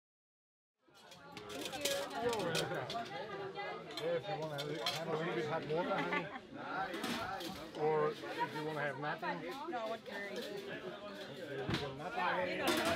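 Serving spoons clink against metal trays.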